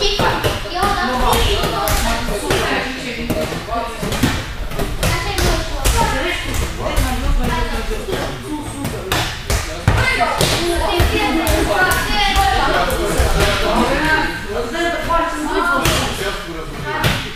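A volleyball thumps off a girl's hands again and again.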